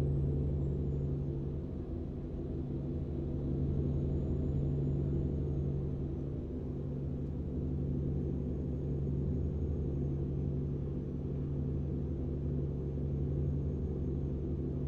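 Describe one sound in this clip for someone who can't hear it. Tyres roll on a highway.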